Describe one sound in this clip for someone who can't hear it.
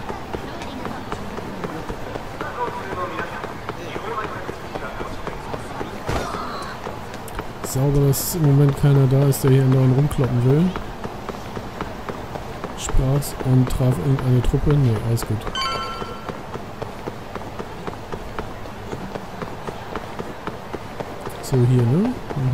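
Footsteps slap quickly on wet pavement as someone runs.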